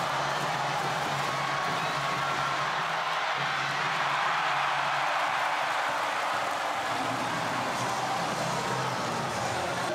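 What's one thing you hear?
Young men cheer and shout close by.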